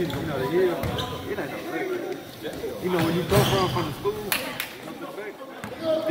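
Young men talk and call out nearby in a large echoing gym.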